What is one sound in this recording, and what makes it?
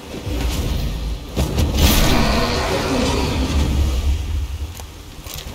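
A magical blast bursts with a deep rumbling roar.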